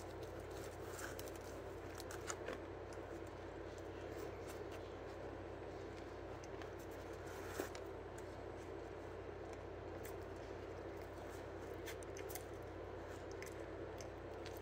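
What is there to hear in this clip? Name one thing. A boy chews food with his mouth closed, close by.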